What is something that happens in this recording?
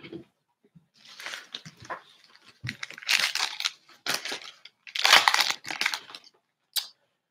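A foil wrapper crinkles and tears as hands rip it open.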